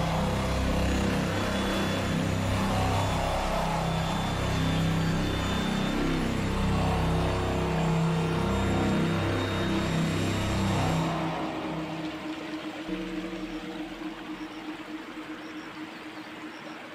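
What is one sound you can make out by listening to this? Water trickles gently.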